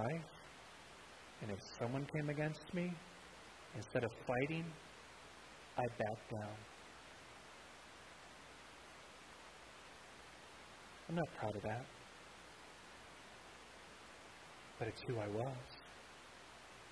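A middle-aged man speaks calmly into a headset microphone, in short phrases with long pauses.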